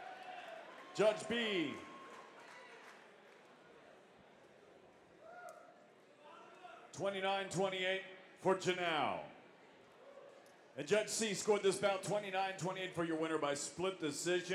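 A man announces loudly and with drawn-out words through a microphone and loudspeakers.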